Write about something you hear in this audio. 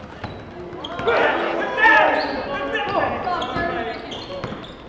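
Spectators and players shout and call out in an echoing gym.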